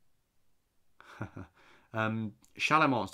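A young man speaks thoughtfully, close to a microphone.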